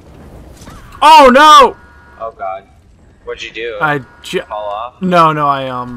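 A young man talks loudly into a headset microphone.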